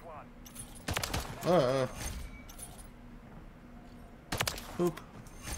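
Gunshots crack sharply in a game.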